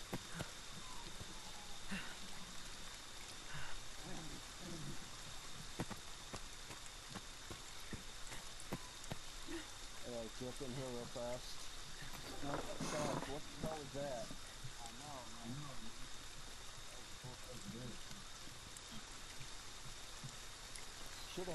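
Footsteps crunch on dirt and leaves.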